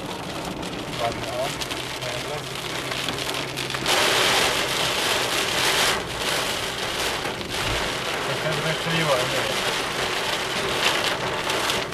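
A windshield wiper swishes across the glass.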